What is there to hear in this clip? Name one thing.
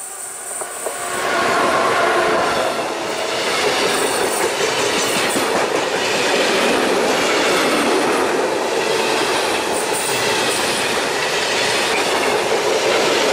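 Wheels clatter rhythmically over rail joints.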